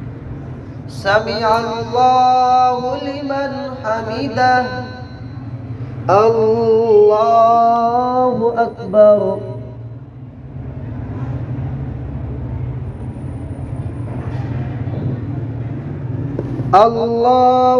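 A man recites in a long, melodic chant, heard through a microphone in an echoing hall.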